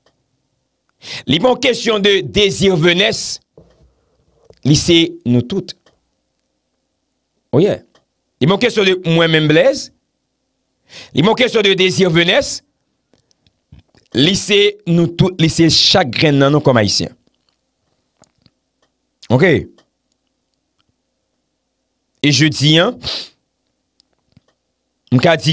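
A young man talks with animation, close into a microphone, in short bursts with pauses.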